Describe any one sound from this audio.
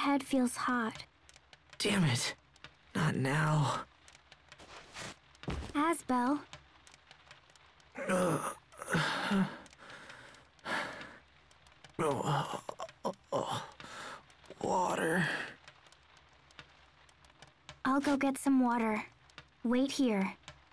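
A young woman speaks softly with concern.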